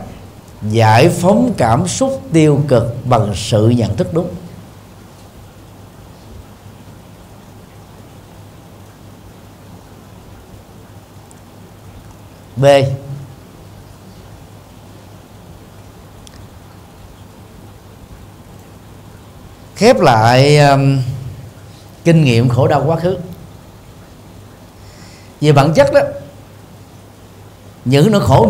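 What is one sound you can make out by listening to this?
A middle-aged man speaks with animation through a microphone, in short bursts with long pauses.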